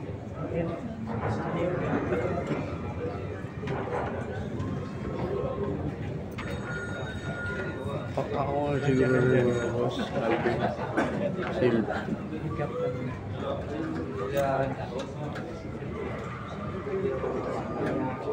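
A crowd of young men chatters throughout.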